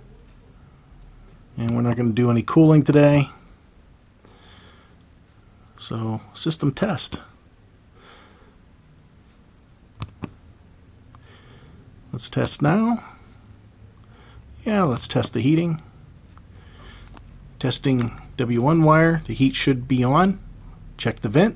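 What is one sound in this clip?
A thermostat dial clicks softly as it turns and is pressed.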